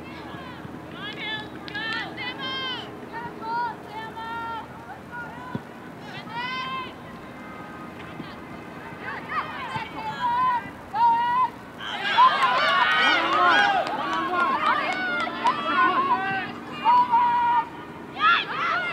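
Young women shout to each other across an outdoor playing field.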